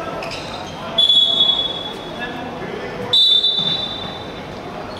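A referee's whistle blows sharply twice.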